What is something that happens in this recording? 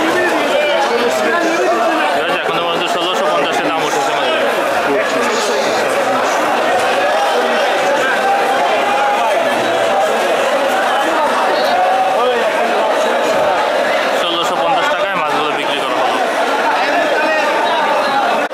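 A crowd of men talks and shouts all at once, close by.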